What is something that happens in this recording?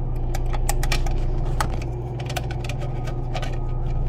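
Wires rustle and click in a metal box.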